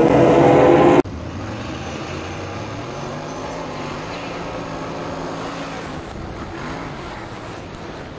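A race car engine roars up close.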